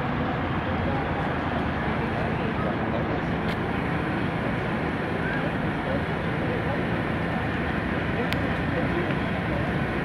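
A motorcycle engine idles and passes close by.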